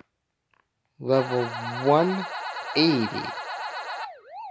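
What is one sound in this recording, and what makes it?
A bright electronic start-up tune plays.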